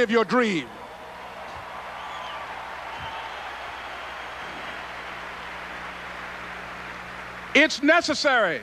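A large crowd cheers and applauds in a wide outdoor space.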